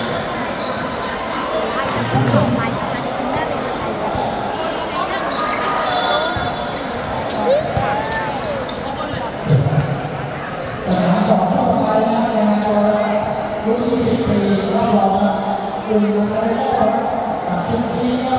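A crowd of young people chatters and cheers in a large echoing hall.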